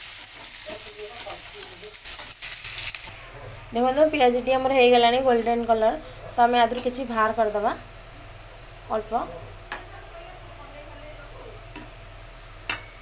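A metal spatula scrapes and stirs food in a metal pan.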